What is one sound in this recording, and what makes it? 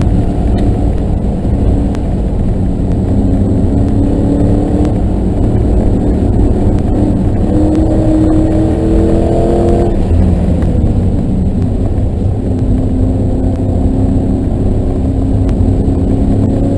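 A car engine roars loudly, rising and falling in pitch.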